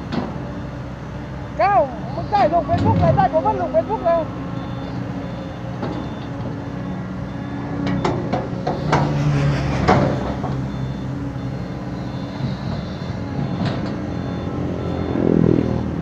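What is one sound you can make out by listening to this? Loose dirt tumbles and thuds as an excavator dumps a load.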